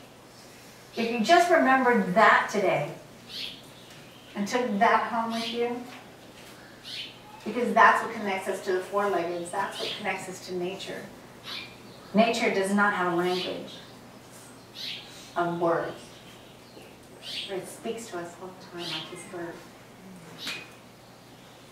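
A woman speaks calmly through a microphone, in bursts with pauses.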